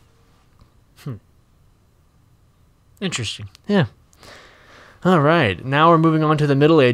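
A young man speaks with animation, close into a microphone.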